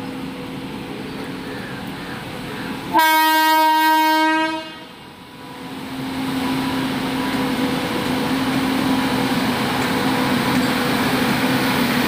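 Train wheels clatter on the rails, growing louder.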